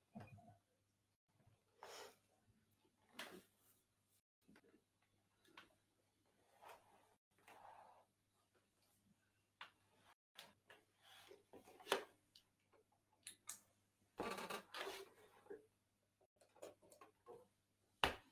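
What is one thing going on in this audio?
A plastic bottle is shaken and crinkled in short bursts.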